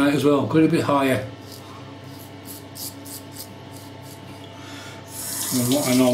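A razor scrapes across stubble in short strokes.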